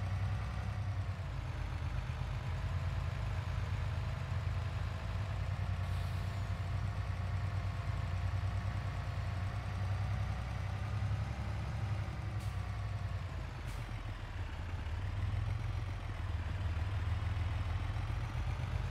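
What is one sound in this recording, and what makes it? A truck engine hums steadily, rising and falling in pitch as it speeds up and slows down.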